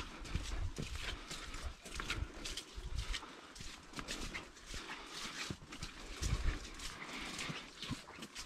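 Dry leaves and fabric rustle and brush close by.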